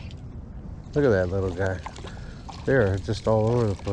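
A fishing reel clicks and whirs as its handle is cranked.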